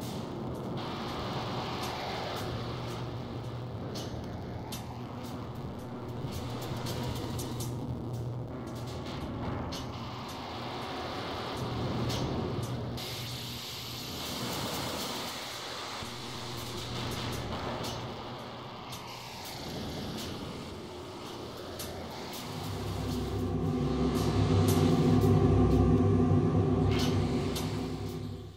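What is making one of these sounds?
A synthesizer plays a shifting electronic drone that swells louder near the end.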